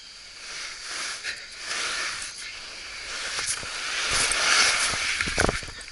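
Leaves rustle close by as they are brushed aside.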